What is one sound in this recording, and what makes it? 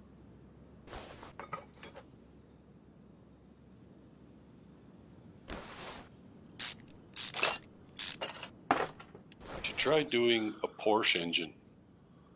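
Metal engine parts clank as they are unbolted and removed.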